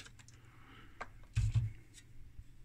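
A metal circuit board cage clatters softly as it is lifted out.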